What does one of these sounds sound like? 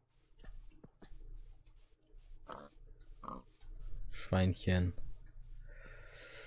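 Footsteps crunch steadily on grass.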